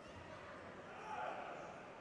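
A judoka hits the mat with a thud.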